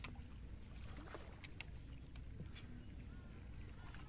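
Water splashes softly as a hand dips into it.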